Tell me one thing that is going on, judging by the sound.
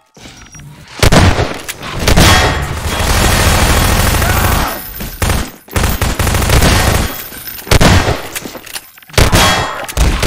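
Automatic gunfire rattles in loud bursts.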